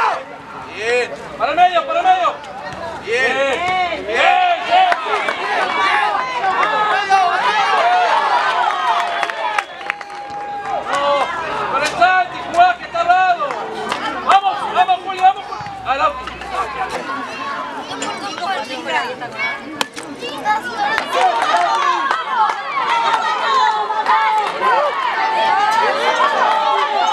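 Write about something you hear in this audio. Young boys shout and call out to each other across an open outdoor field.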